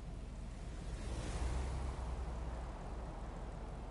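A car rushes past close by with a loud whoosh.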